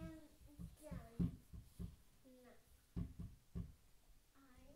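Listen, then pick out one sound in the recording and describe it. Small footsteps thump on a wooden floor.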